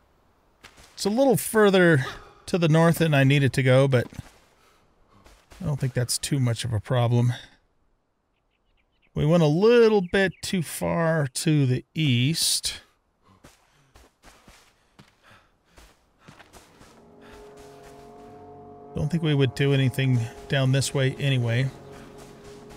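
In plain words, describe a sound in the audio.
An older man talks casually into a close microphone, pausing now and then.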